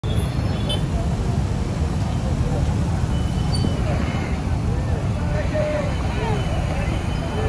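Motorcycle engines rumble and idle in busy street traffic.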